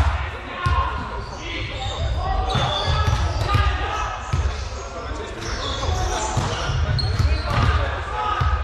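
Young players call out to each other.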